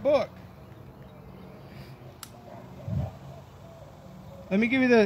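A man speaks calmly, a short distance away, outdoors.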